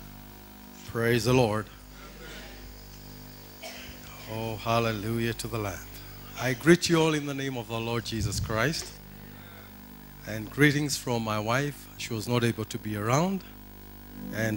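A man speaks into a microphone with animation, heard through loudspeakers in a large echoing hall.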